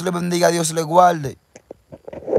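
A young man speaks loudly close by.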